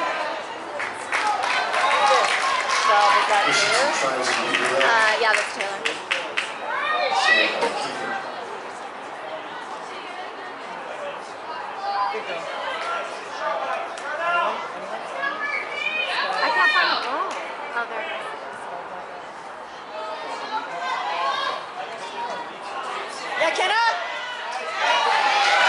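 Young women shout and call out across an outdoor field.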